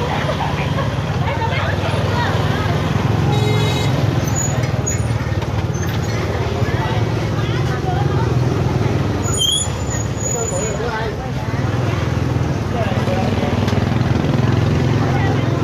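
Many people chatter nearby in a busy outdoor market.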